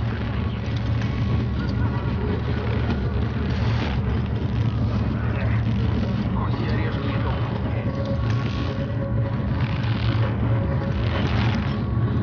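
A rope creaks and rustles as someone climbs it.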